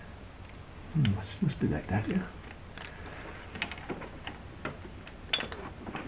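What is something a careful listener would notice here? Plastic parts click and rattle as hands handle engine wiring.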